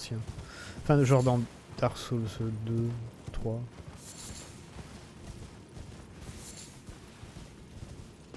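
Horse hooves clop on the ground at a steady run.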